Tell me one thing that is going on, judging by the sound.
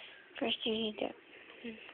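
A finger taps on a touchscreen.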